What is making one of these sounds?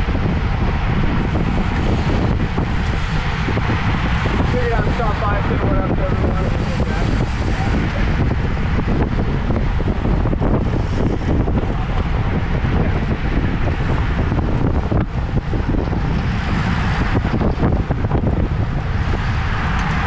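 Bicycle tyres hum steadily on the road.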